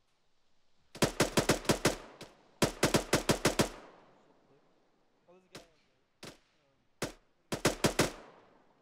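A rifle fires rapid bursts of loud shots, with short echoing tails.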